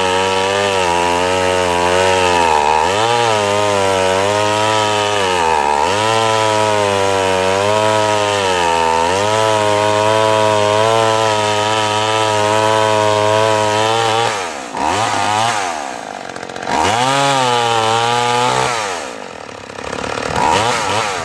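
A chainsaw engine roars loudly outdoors, revving up and down as it cuts.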